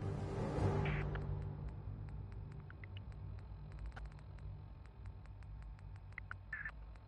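Short electronic menu clicks tick repeatedly.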